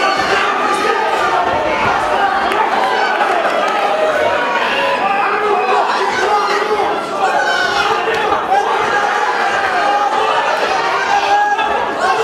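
Boxing gloves thud against a boxer's body.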